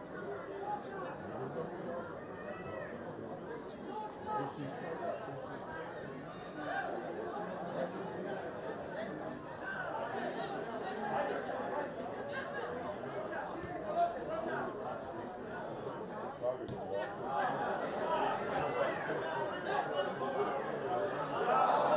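A crowd of spectators murmurs and calls out in a large open stadium.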